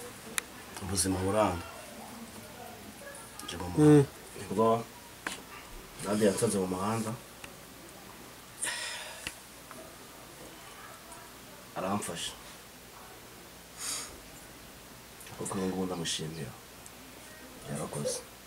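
A young man speaks calmly and close by, with pauses.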